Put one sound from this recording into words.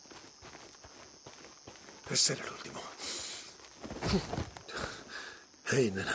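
Footsteps crunch on dry grass and dirt.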